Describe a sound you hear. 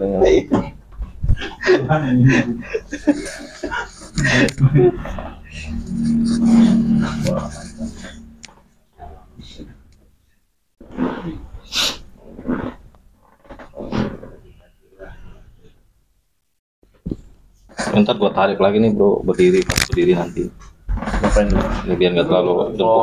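Hands slap and rub on a man's shoulders and neck.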